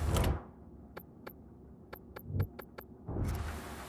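Soft interface clicks tick several times in quick succession.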